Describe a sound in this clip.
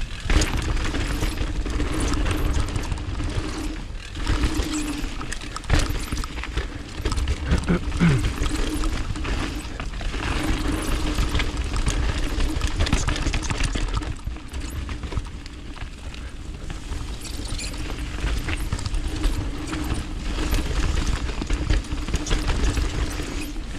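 A bicycle rattles and clunks over rocks and roots.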